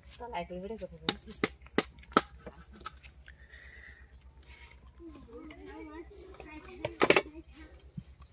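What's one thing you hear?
Bamboo poles knock and clatter under a man's hands.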